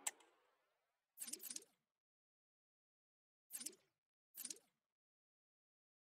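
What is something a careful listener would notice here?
Short electronic swooshes sound as a game menu switches pages.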